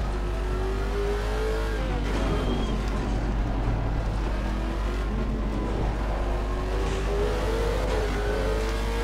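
A racing car engine revs high and drops as gears shift.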